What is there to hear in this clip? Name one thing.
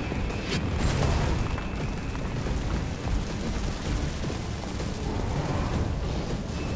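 Footsteps tread on pavement.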